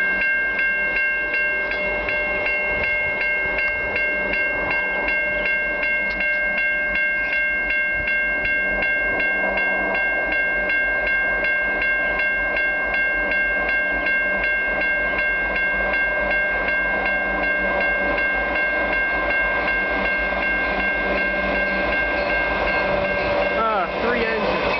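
A railway crossing bell rings rapidly and steadily.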